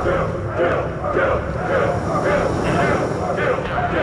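A jet of gas hisses and roars in short bursts.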